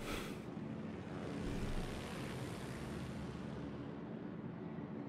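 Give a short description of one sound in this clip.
Propeller aircraft engines drone overhead.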